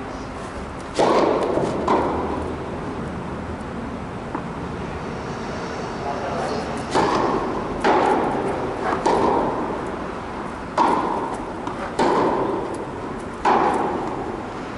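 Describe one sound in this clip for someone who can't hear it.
Tennis balls are struck with rackets in a large echoing hall.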